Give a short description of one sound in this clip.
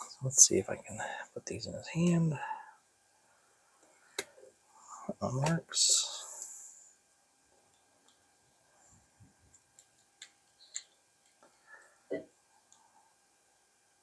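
Small plastic toy parts click and snap together.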